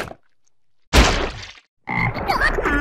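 A frog croaks loudly.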